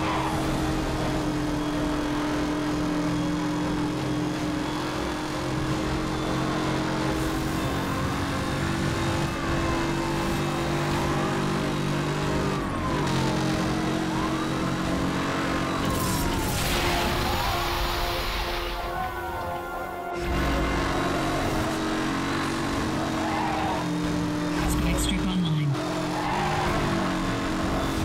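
A sports car engine roars steadily at high speed.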